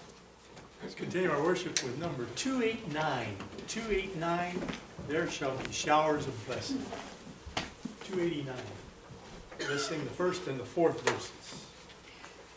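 An older man talks casually in a room with some echo.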